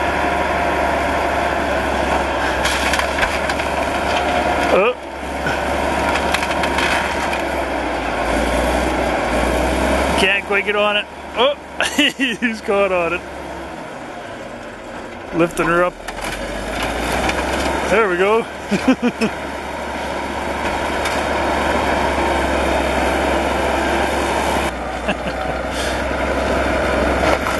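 Metal creaks and scrapes as a bulldozer pushes a pickup truck.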